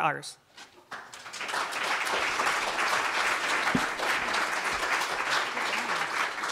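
An audience claps and applauds steadily.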